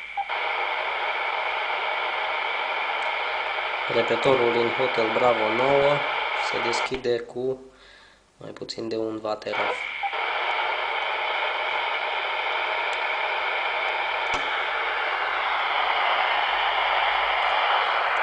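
Static hisses steadily from a handheld radio's speaker.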